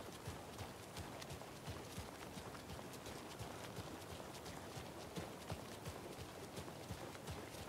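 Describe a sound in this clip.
Footsteps tread steadily on hard wet ground.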